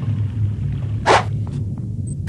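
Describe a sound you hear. A heavy metal wrench swings through the air with a whoosh.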